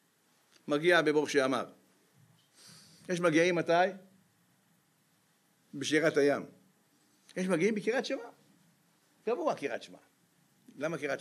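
An elderly man speaks with animation into a microphone, in short bursts with pauses.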